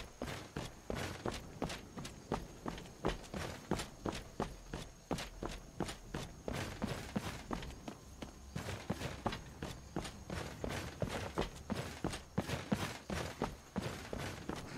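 Footsteps scuff on cobblestones.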